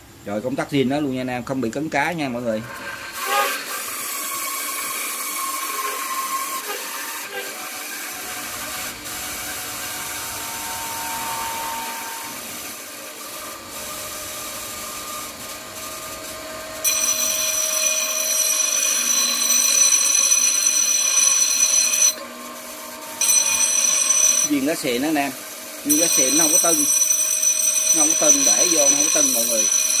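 A bench grinder motor whirs steadily.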